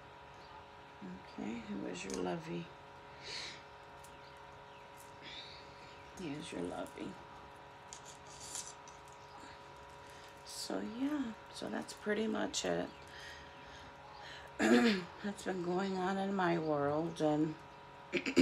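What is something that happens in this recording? A woman talks calmly and softly nearby.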